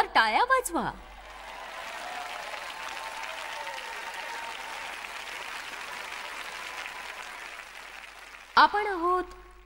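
A large crowd applauds in a large hall.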